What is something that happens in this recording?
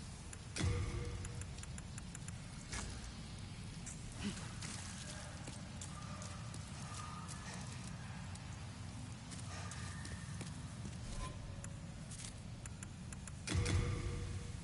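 Short game menu clicks and chimes sound now and then.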